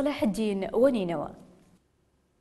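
A middle-aged man speaks forcefully into a microphone.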